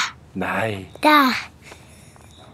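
A young girl shouts excitedly close by.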